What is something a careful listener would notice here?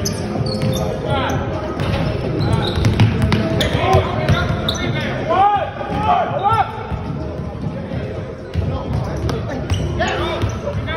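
Sneakers squeak sharply on a hard wooden floor.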